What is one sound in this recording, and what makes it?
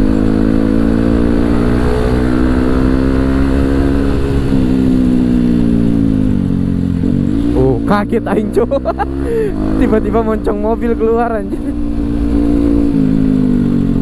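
A motorbike engine hums close by, its pitch rising and falling with the throttle.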